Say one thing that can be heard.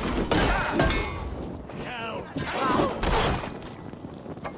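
Blades clash and strike in a fight.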